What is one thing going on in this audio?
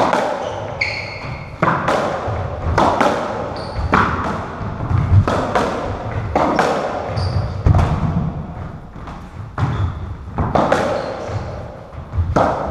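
Footsteps thud and patter across a wooden floor.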